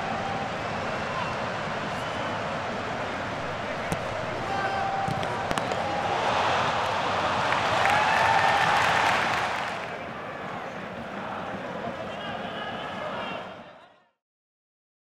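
A large crowd roars steadily, swelling loudly for a few seconds and then easing off.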